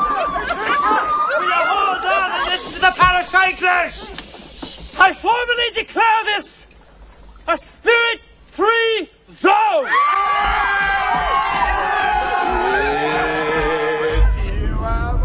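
A crowd of men and women shout and call out excitedly outdoors.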